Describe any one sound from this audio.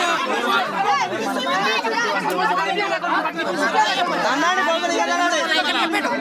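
A woman shouts angrily.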